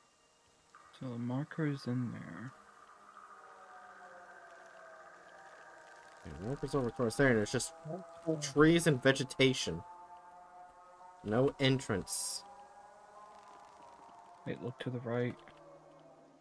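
A man talks with animation through a microphone, in short bursts.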